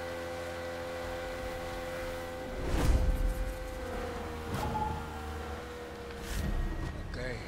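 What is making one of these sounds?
A boat's outboard motor drones steadily.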